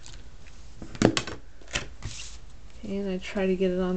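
A card taps down onto a table.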